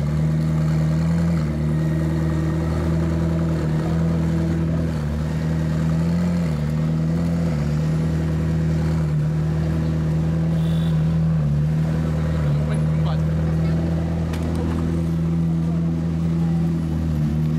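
A twin-turbo V8 supercar idles.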